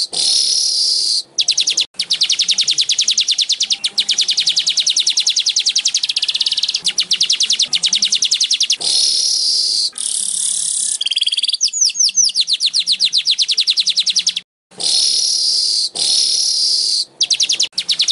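A small bird sings a fast, high, buzzy chattering song close by.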